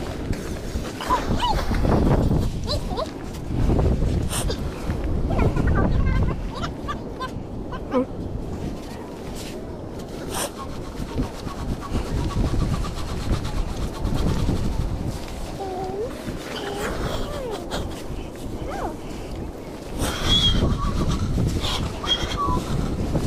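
A clam gun pumps into wet sand with a sucking squelch.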